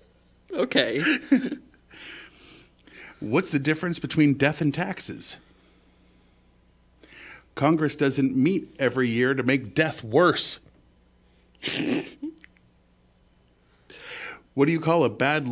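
A second man laughs into a close microphone.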